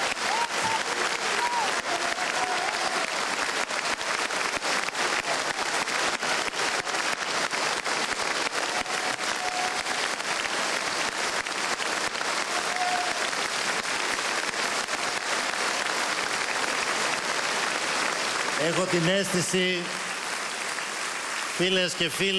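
A large crowd applauds and cheers loudly in a big echoing hall.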